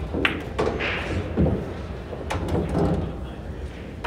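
A cue strikes a pool ball, sending balls clicking together.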